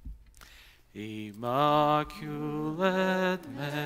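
A man chants in a singing voice through a microphone in an echoing hall.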